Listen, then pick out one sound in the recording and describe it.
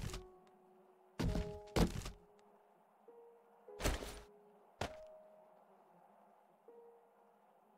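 Short clicks and thumps sound as items are moved.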